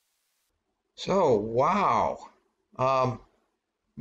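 A middle-aged man speaks expressively, close to a microphone.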